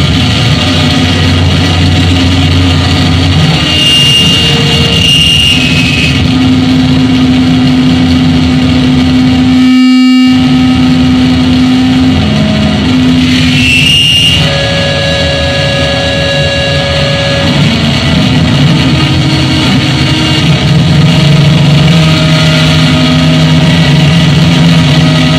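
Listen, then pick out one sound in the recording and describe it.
Loud electronic music drones and hums with shifting tones.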